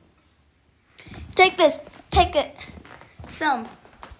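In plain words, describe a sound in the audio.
Shoes thud on a wooden floor.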